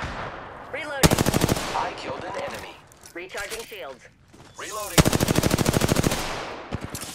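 Rapid bursts of automatic gunfire rattle loudly.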